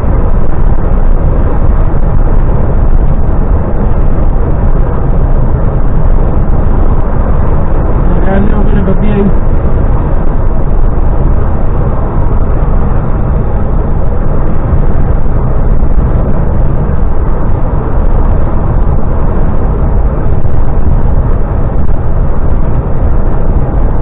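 Tyres roar steadily on a road at speed.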